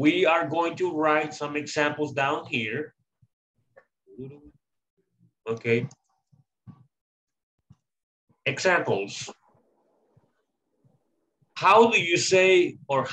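A man speaks calmly through an online call, explaining in bursts with pauses.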